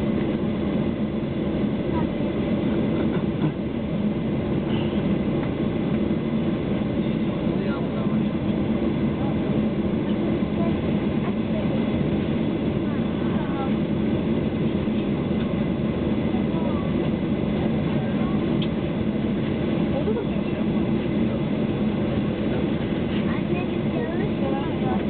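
Aircraft wheels rumble over a runway.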